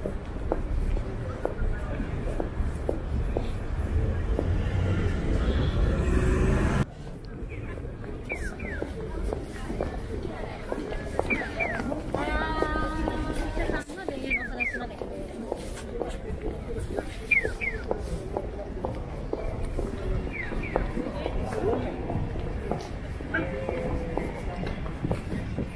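A busy city street hums in the background outdoors.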